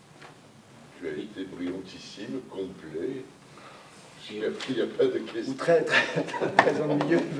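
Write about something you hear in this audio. A middle-aged man speaks calmly to a room, heard through a microphone.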